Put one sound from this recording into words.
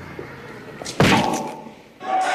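A body thuds heavily onto a hard floor.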